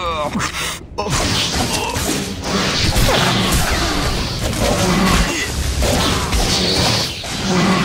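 Blaster shots and clashing blows ring out in a fight.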